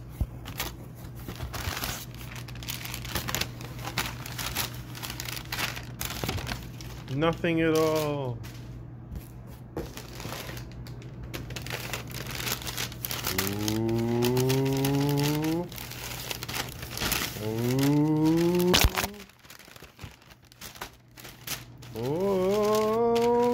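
Paper crinkles and rustles up close.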